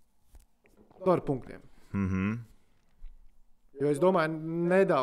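A man speaks with animation into a microphone close by.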